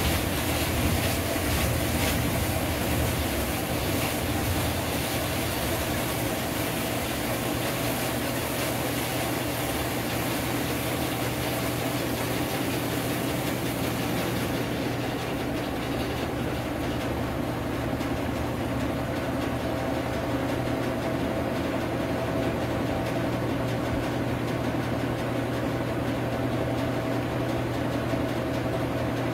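A washing machine drum spins with a steady low hum and whir.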